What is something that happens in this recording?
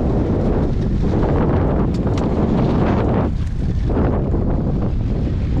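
Choppy water slaps against the side of a small boat.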